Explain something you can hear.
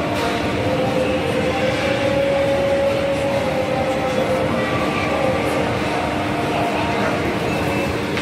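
Escalators hum steadily.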